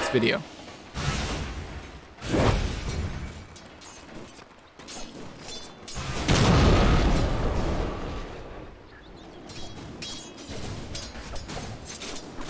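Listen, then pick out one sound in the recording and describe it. Magical spell effects burst with loud whooshing blasts.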